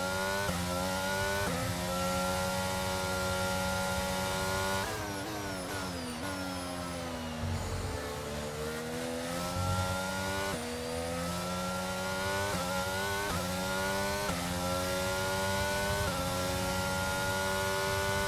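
A racing car engine screams at high revs, shifting up through the gears and dropping in pitch under braking.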